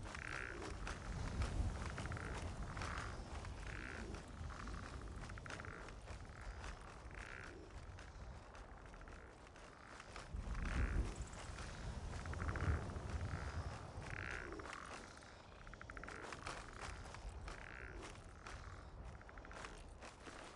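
Footsteps crunch over rocky ground.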